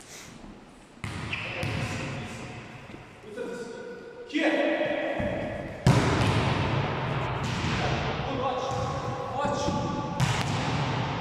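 A volleyball is struck hard and echoes through a large hall.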